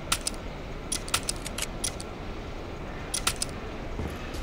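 Short interface clicks sound in quick succession.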